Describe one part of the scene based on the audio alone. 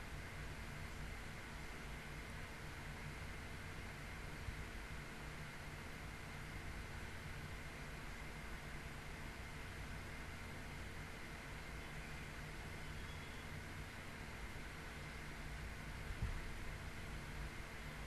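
A hand rubs and grips a microphone close up.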